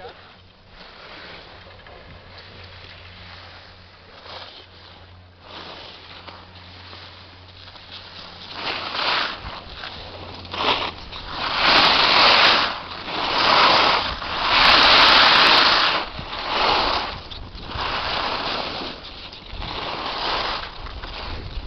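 Skis scrape and hiss over packed snow, growing louder in bursts.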